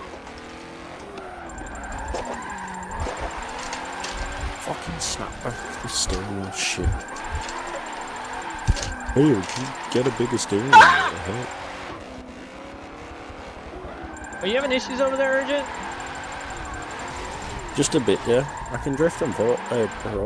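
Tyres screech as a car slides through turns.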